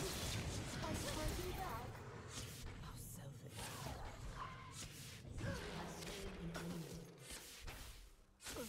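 Game sword strikes clash and thud.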